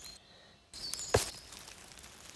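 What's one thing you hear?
A mushroom stem snaps as it is pulled from dry needles on the ground.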